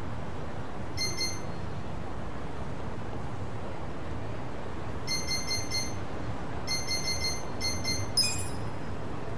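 Short electronic beeps sound as a menu choice moves.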